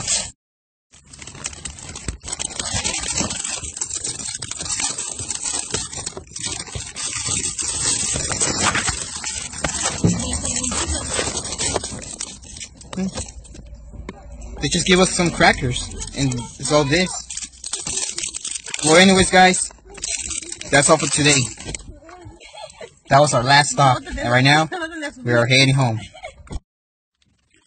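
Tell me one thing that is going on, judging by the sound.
Plastic wrappers crinkle and rustle as a hand rummages through a bag.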